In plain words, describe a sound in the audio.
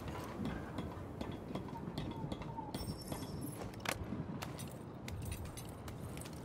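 Hands grip and creak on a metal pipe while climbing.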